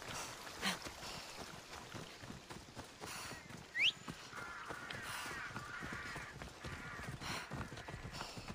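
Footsteps swish through grass and crunch on a dirt path.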